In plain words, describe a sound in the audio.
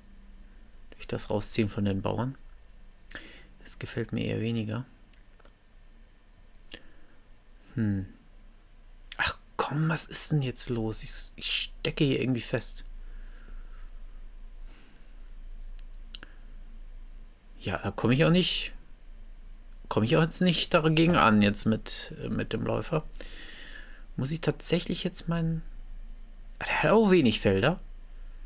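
A young man talks calmly and close to a microphone, with pauses.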